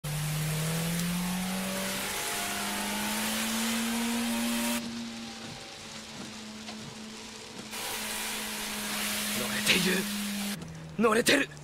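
A car engine roars and revs higher.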